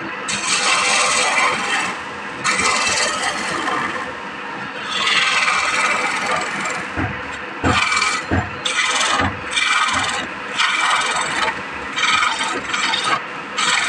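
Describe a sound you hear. A chisel scrapes and hisses against wood spinning on a lathe, in bursts.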